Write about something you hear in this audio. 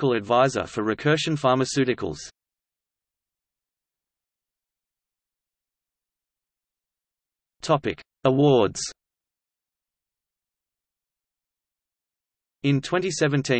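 A man speaks calmly into a microphone, in short bursts with silent pauses.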